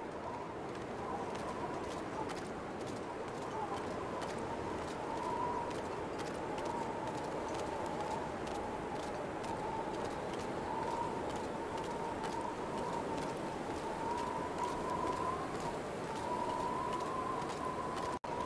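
Footsteps crunch on ice at a steady pace.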